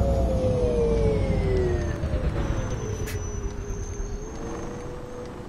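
A bus engine drones and winds down as the bus slows.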